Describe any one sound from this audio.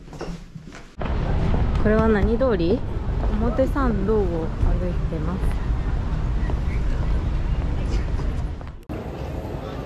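A busy street hums with passing pedestrians outdoors.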